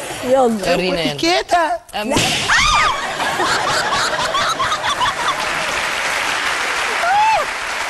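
A young woman laughs loudly and with animation close to a microphone.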